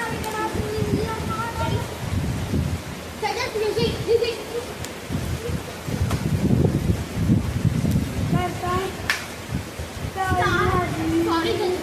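A young boy sings through a microphone and loudspeaker.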